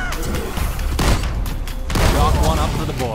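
A pistol fires.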